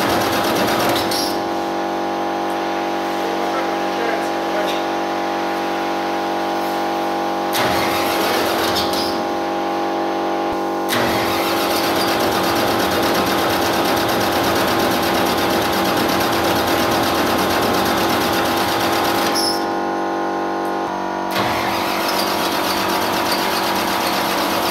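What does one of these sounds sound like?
A bulldozer's diesel engine idles loudly with a steady hum.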